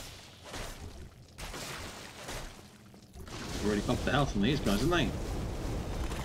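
A sword slashes into flesh with wet thuds.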